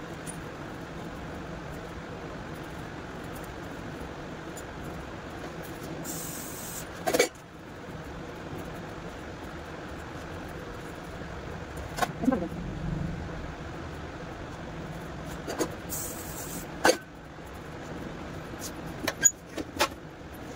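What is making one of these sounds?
Hair rustles softly as hands comb and twist it.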